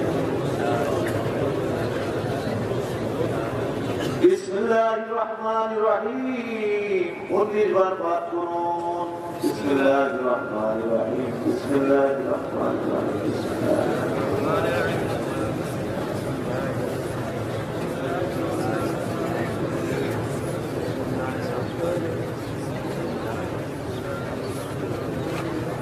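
A man preaches in a loud, chanting voice through a microphone and loudspeakers.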